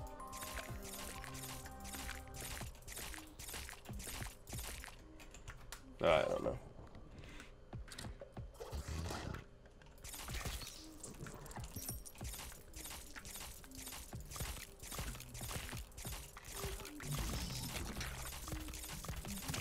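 Rapid video game gunshots fire in quick bursts.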